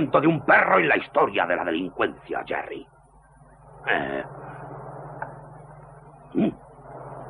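A second man answers with animation.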